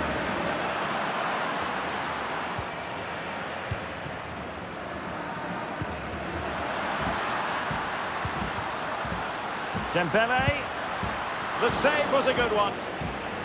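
Footballs thud as players kick the ball.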